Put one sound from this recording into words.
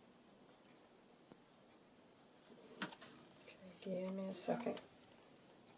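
Paper pages rustle as a small book is handled.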